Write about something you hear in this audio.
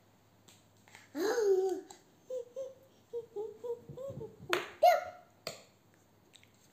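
A small girl shouts and babbles playfully close by.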